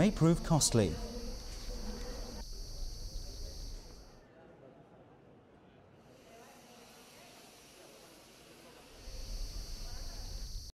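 A crowd murmurs and chatters in a busy echoing hall.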